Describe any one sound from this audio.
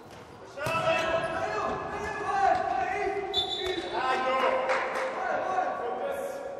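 Sneakers squeak on a hard floor in an echoing hall.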